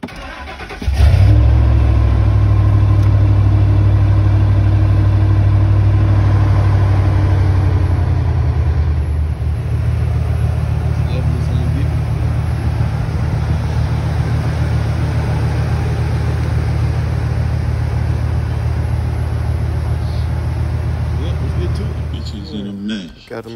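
A truck engine idles with a deep, throbbing rumble.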